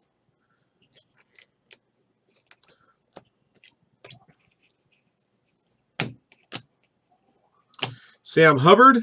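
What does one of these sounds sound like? Stiff trading cards flick and rustle as they are sorted by hand.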